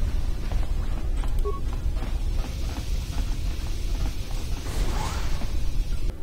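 Footsteps tap on a hard metal floor.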